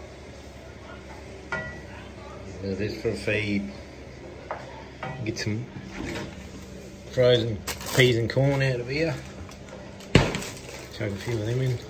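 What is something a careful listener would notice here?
A spatula scrapes and stirs food in a frying pan.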